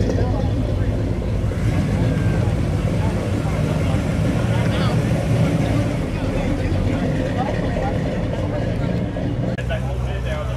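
An old car engine idles and rumbles as the car rolls slowly past.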